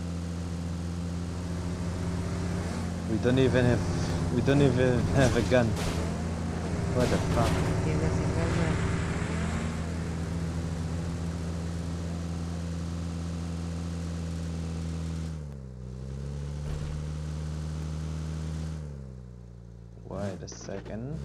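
A vehicle engine drones steadily, easing off and picking up again.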